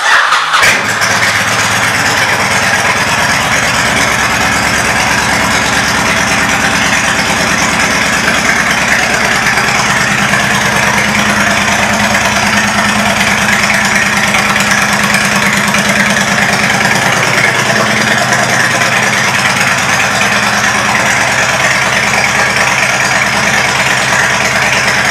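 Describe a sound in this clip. A motorcycle engine idles close by with a steady, throbbing rumble.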